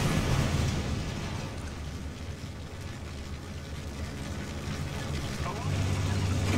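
A fire crackles and rumbles low, slowly fading.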